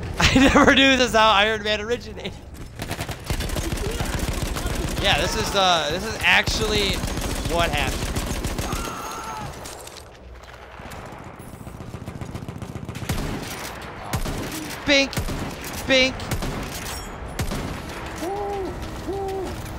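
Rifle shots crack out sharply.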